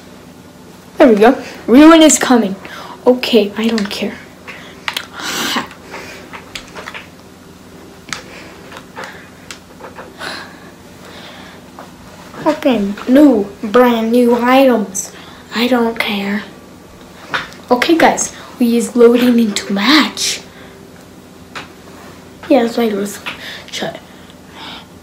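A young boy talks excitedly and loudly close to a microphone.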